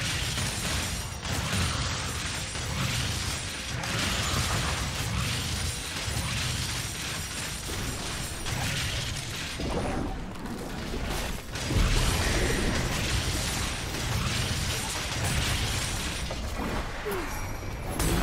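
Video game battle effects clash and burst constantly.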